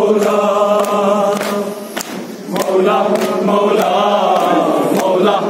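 A man sings a lament loudly through a microphone.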